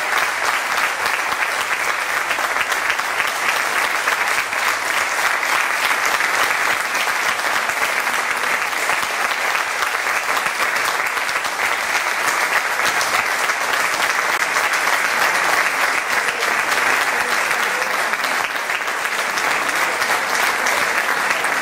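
An audience applauds steadily in a large echoing hall.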